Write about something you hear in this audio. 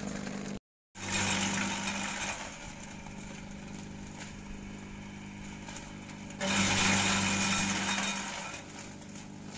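A shredder grinds and chops branches loudly.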